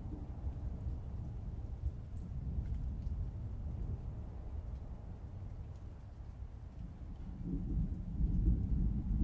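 Fingers tap softly on a laptop keyboard.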